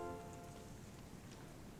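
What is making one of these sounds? An orchestra and choir finish a piece in a large echoing hall.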